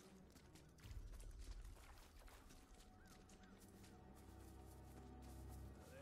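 Footsteps thud quickly on a dirt path.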